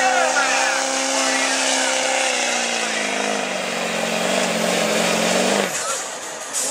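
A diesel truck engine roars loudly under heavy strain, its pitch slowly dropping, then cuts off abruptly.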